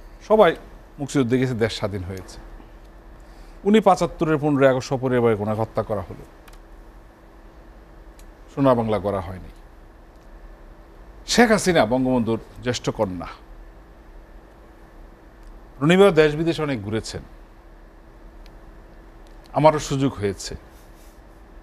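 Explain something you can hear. A man speaks calmly into a microphone in short bursts.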